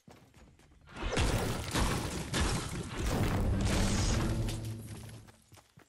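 A pickaxe strikes stone with repeated hard knocks.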